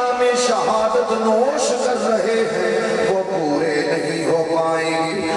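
A man chants melodically into a microphone, heard through loudspeakers.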